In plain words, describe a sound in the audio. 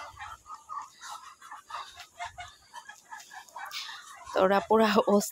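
Ducks make soft, quiet chattering calls nearby.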